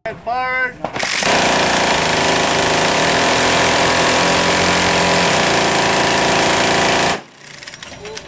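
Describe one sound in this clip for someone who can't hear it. A rotary machine gun fires in a long, loud, continuous roar.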